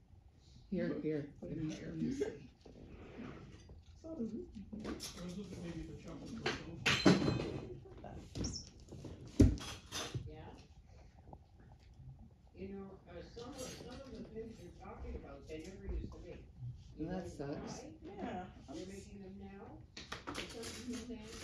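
A young woman talks playfully to a dog close by.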